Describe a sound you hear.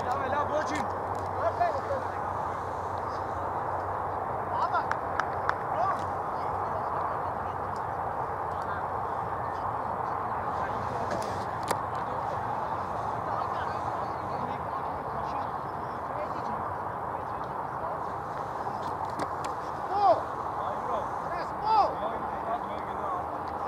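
Football players shout to each other far off across an open field.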